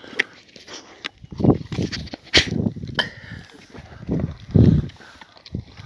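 Bones crunch and crack between dogs' teeth.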